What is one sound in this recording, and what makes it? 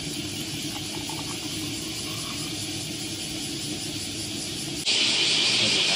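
Liquid pours into a metal cup.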